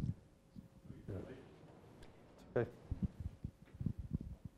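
A man speaks with animation through a microphone in a large room.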